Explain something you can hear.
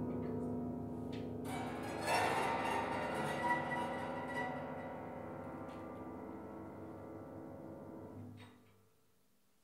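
Piano strings are struck inside the piano and ring out with a resonant, slowly fading sound.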